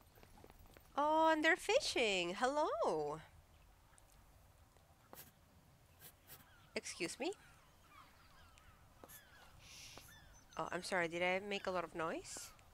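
A young woman speaks animatedly into a close microphone.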